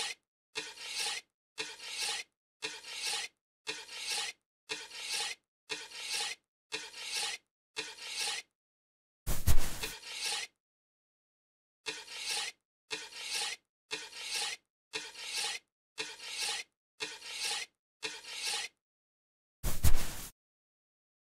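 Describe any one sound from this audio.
A shovel digs into loose dirt again and again.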